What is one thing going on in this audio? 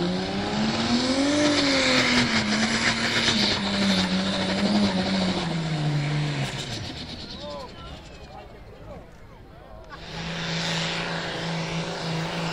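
A tractor engine roars loudly and strains, then eases off before revving up again.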